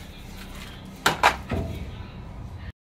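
Hard plastic parts knock and clatter close by.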